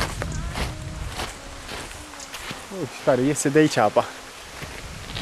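A young man speaks close by, calmly.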